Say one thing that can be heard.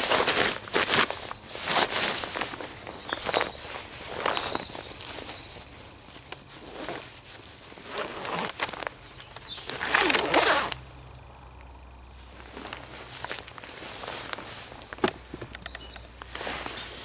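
Stiff protective fabric rustles and swishes close by.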